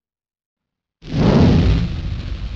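Flames burst and roar with a loud whoosh.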